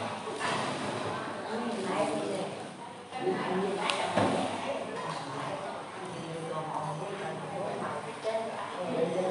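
Several men and women talk with each other at once, close by.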